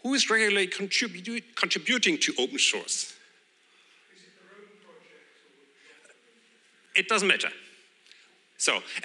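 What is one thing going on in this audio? A man speaks into a microphone over loudspeakers, with pauses between phrases, in a large room.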